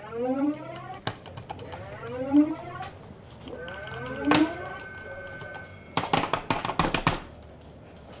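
A man types rapidly on a clattering keyboard.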